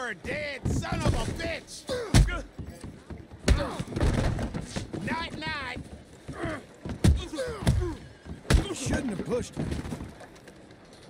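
Men grunt and shout while brawling.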